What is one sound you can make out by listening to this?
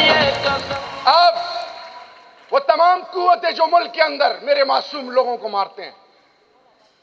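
A young man speaks with animation into a microphone over loudspeakers.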